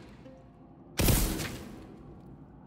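An energy gun fires with a loud, sharp blast.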